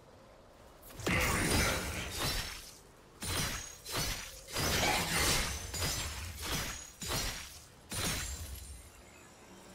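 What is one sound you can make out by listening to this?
Magic blasts and weapon strikes clash in a fast, noisy fight.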